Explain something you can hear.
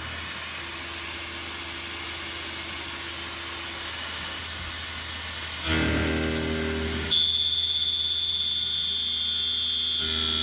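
An end mill cuts into metal with a high, shrill squeal.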